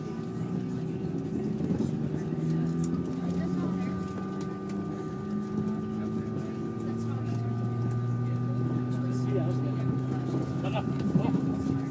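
An aircraft's engines drone steadily, heard from inside the cabin.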